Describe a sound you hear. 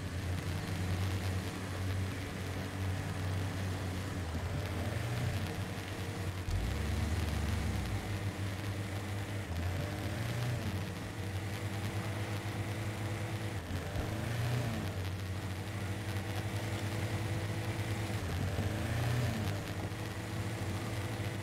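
Tyres crunch over rocks and gravel.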